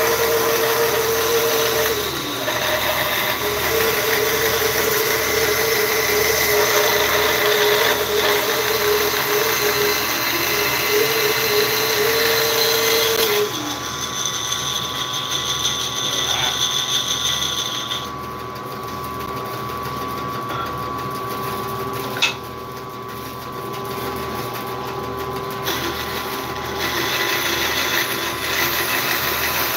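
A band saw whines as it cuts through wood.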